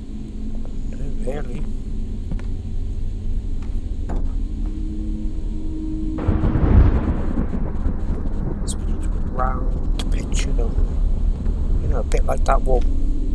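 A man speaks quietly into a microphone, now and then.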